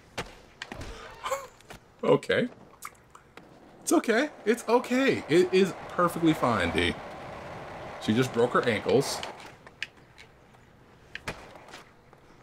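A skateboard clacks as it lands.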